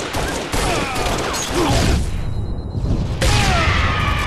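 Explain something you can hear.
Rapid gunfire rattles.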